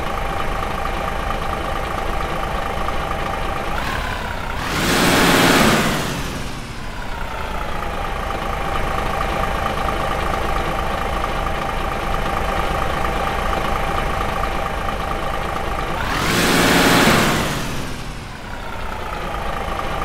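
A semi truck's diesel engine idles.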